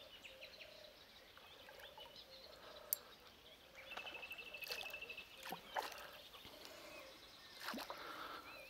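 Something splashes lightly in calm water.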